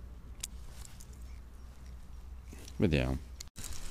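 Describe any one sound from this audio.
Small scissors snip through fishing line.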